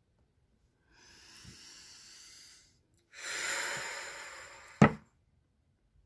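A woman breathes in and out slowly and deeply.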